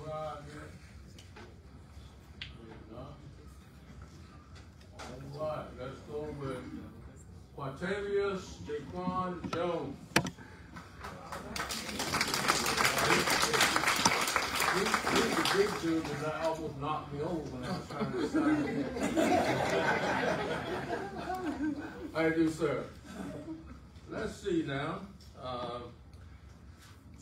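A man speaks calmly to a room, heard from across the room.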